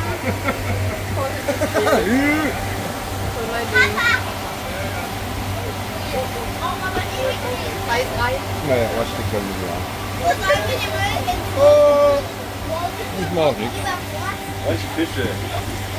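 Several women and children chat and laugh nearby.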